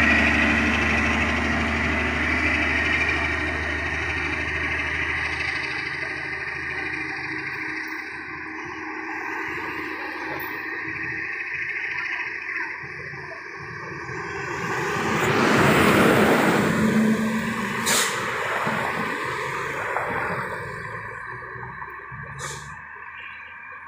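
A diesel truck engine idles nearby.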